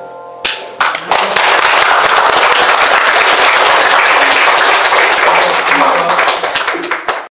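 An audience applauds in a room with some echo.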